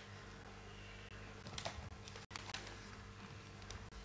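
Paper rustles close to a microphone.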